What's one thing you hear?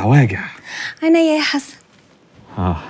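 A woman laughs lightly.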